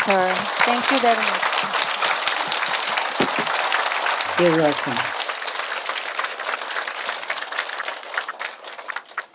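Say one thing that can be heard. A large crowd applauds and gradually fades.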